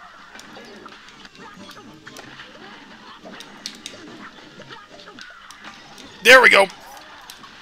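Cartoon gunfire pops rapidly in a video game.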